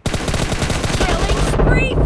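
An assault rifle fires in short bursts in a video game.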